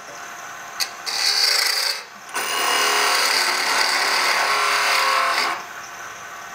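A chisel scrapes and shaves the spinning wood with a loud hiss.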